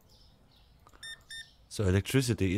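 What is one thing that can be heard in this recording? A checkout scanner beeps twice.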